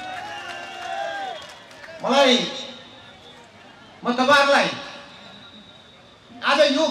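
A middle-aged man speaks with emphasis into a microphone, heard through loudspeakers, in short bursts with pauses.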